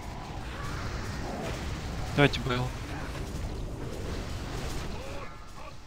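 Magic spells crackle and burst in a fast battle.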